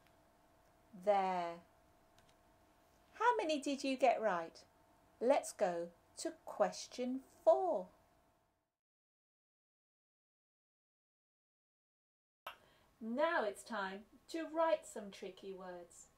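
A woman speaks clearly and calmly into a nearby microphone.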